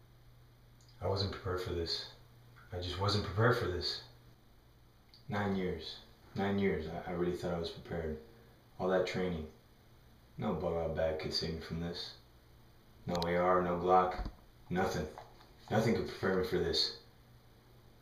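A bearded man speaks close by in short, animated bursts with pauses.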